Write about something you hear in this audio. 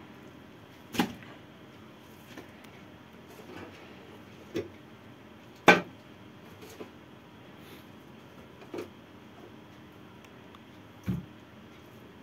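Hands knock and bump against a hollow plastic barrel.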